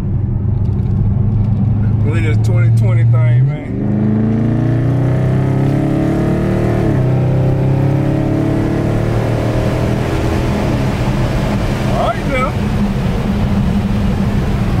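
Tyres rumble on a rough road.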